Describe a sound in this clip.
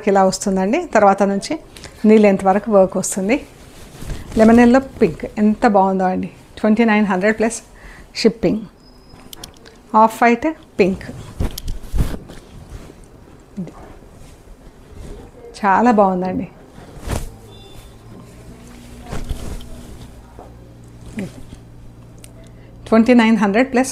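A middle-aged woman speaks calmly and clearly, close to a microphone.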